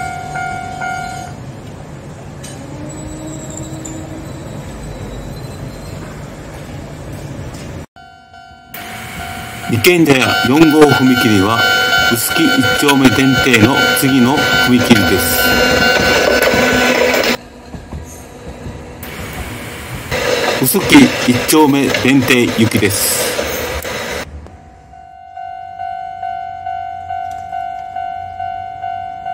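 A railway crossing bell rings in steady, rapid strokes.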